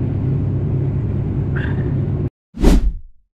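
A propeller engine drones steadily with a low roar, then cuts off abruptly.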